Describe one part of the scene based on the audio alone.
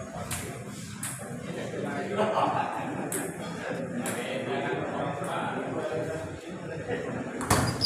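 A table tennis ball clicks sharply against paddles and the table.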